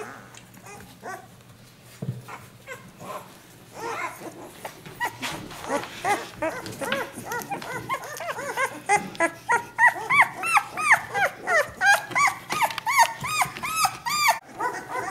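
Puppies whine and squeal in high, rapid yelps close by.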